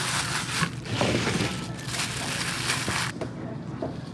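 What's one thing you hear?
Plastic wrap crinkles and rustles under hands.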